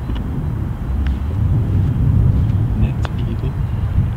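A golf putter taps a ball.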